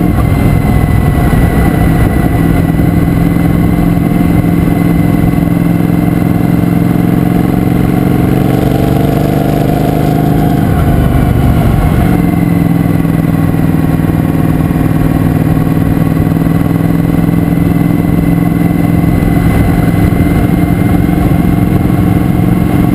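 A motorcycle engine drones steadily close by, rising in pitch and then dropping as it shifts gear.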